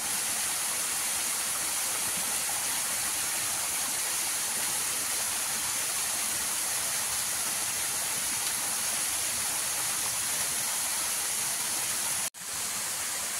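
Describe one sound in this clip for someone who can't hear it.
A small waterfall splashes and rushes steadily over rocks.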